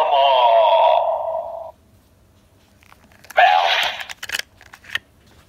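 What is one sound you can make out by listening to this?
A toy device plays a short electronic jingle through a small speaker.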